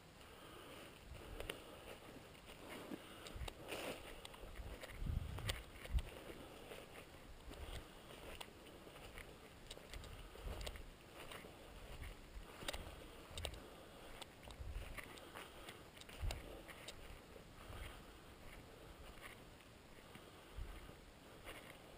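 Footsteps crunch through dry leaves and twigs at a steady walking pace.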